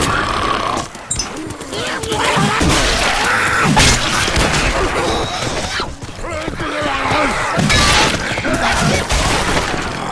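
An axe swings and chops into flesh with wet thuds.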